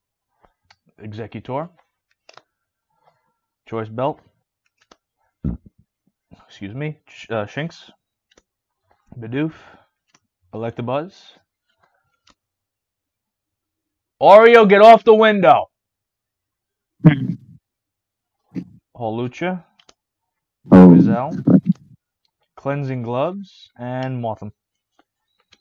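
A man speaks with animation close to a microphone, in short bursts with pauses.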